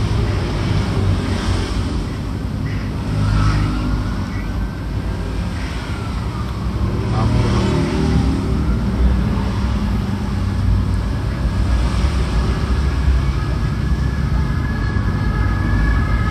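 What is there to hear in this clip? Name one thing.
A screwdriver scrapes and clicks against a plastic casing.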